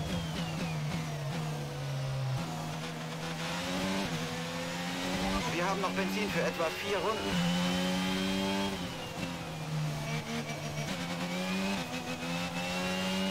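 A racing car engine screams, rising and falling in pitch as it shifts gears.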